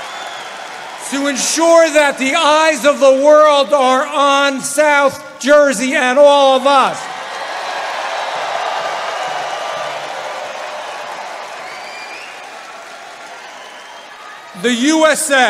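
A man speaks loudly into a microphone over loudspeakers to a crowd.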